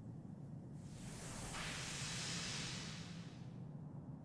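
A magical sparkle shimmers and hisses softly.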